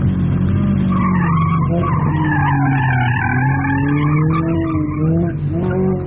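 Tyres squeal on pavement as a car slides through a turn.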